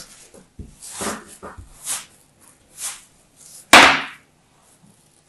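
Clumps of sand crumble and break apart.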